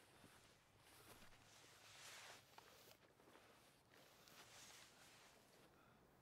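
Leaves and grass rustle softly.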